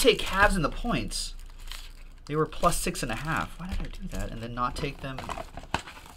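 A cardboard box rustles as it is handled.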